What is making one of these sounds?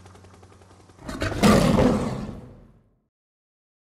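A lion roars loudly.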